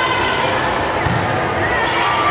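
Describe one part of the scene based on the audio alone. A volleyball is struck with a loud smack.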